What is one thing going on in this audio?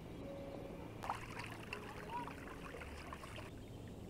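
Water splashes as hands rinse a dish.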